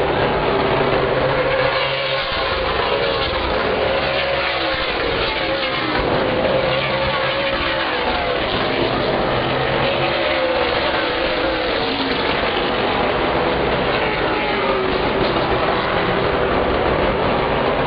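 Race car engines roar loudly around a track.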